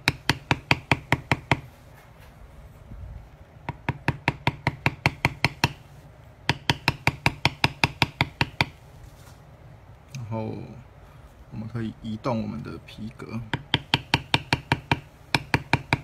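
A mallet taps rapidly on a metal stamping tool, in quick bursts of sharp knocks.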